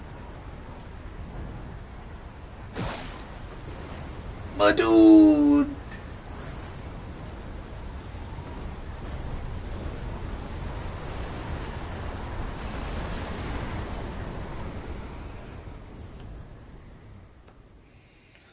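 A storm wind roars and rumbles.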